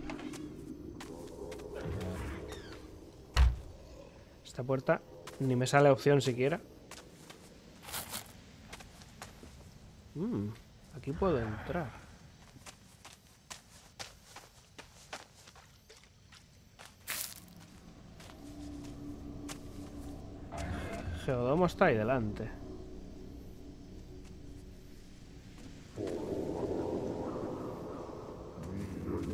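Footsteps shuffle over grass and wooden floorboards.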